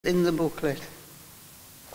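A man speaks briefly in a large echoing hall.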